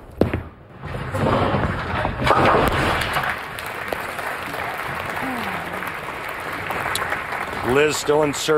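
A large crowd cheers and applauds in a big echoing hall.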